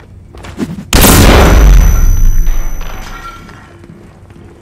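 An explosion booms close by and rumbles away.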